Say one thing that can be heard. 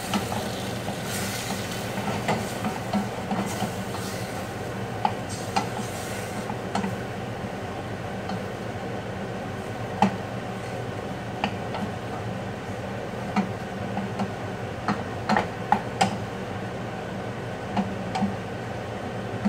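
A range hood fan hums steadily.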